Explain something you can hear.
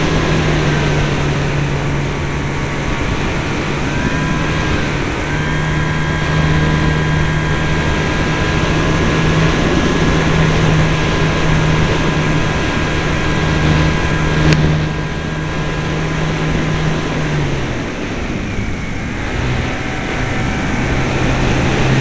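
A small electric motor whines steadily as a model plane flies.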